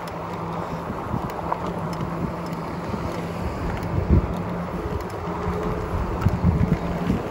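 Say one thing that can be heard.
An electric bike's hub motor whines under power.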